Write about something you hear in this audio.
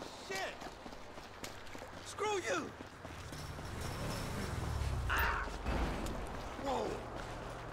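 Footsteps run quickly over pavement.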